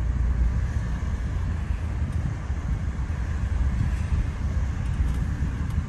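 A passing car's tyres hiss on the road nearby.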